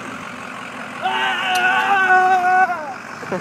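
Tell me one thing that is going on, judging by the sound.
A man lets out a long, loud yell.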